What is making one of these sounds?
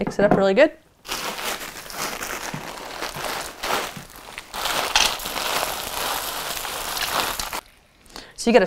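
Dried food pours and rattles from a bag into a bowl.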